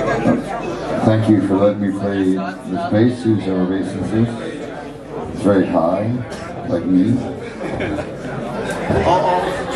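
A middle-aged man sings into a microphone.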